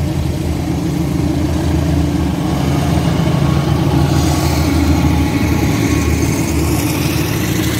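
A diesel locomotive engine rumbles loudly as a train approaches and passes close by.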